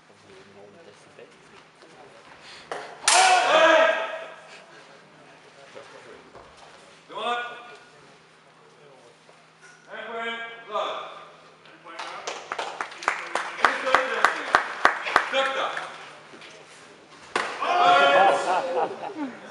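Steel swords clash and clatter.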